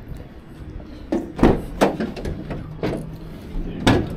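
A van door clicks and swings open.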